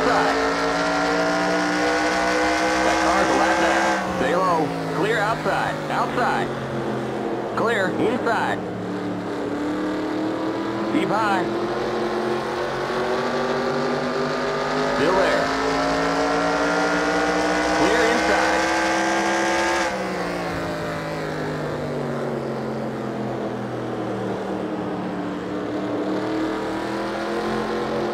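A race car engine roars steadily, rising in pitch as it speeds up and dropping as it slows.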